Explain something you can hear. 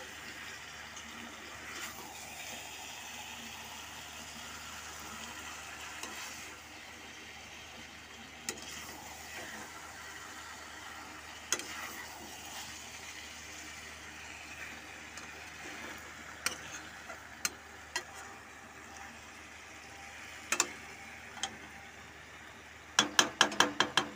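A spatula scrapes and knocks against a metal pan.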